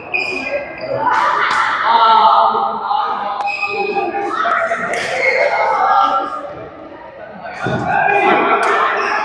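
Men talk casually in an echoing hall.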